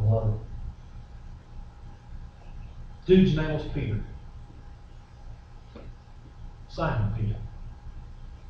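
A middle-aged man speaks in short bursts in a large echoing room.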